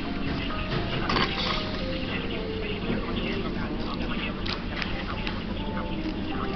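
Paper rustles and crinkles as it is handled close by.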